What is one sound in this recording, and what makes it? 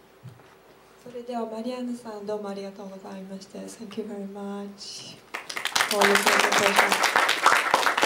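A woman speaks cheerfully into a microphone.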